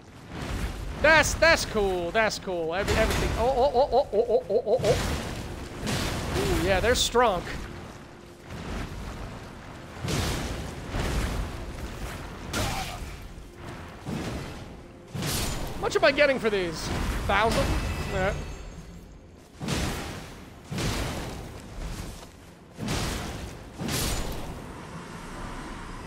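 Heavy weapon blows thud and crash repeatedly.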